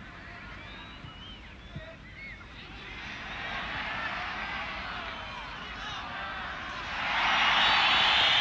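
A large stadium crowd cheers and roars, swelling loudly toward the end.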